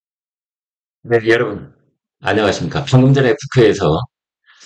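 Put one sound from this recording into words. A middle-aged man speaks calmly and close to a microphone.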